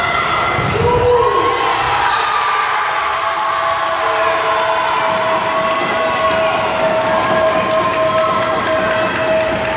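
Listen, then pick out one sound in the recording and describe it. Young women call out to each other in a large echoing gym.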